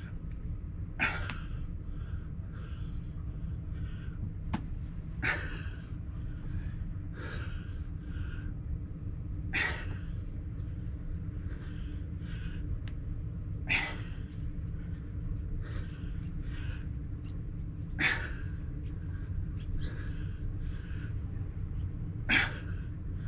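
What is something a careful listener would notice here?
A man exhales sharply with effort every few seconds.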